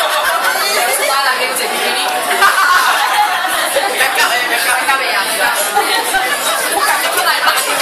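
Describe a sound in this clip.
A woman laughs loudly nearby.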